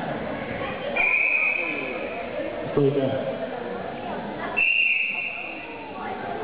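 A referee blows a short shrill whistle.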